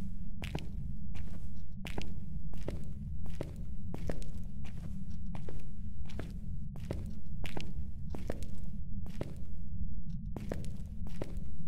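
Footsteps thud slowly and steadily on a hard floor.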